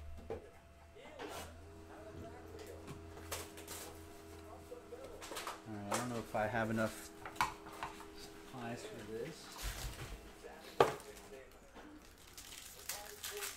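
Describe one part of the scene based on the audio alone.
Cardboard packs rustle and tap as hands handle them.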